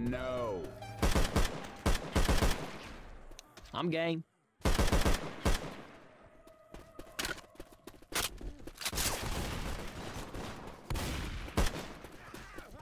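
Gunshots fire in rapid bursts, echoing through a large hall.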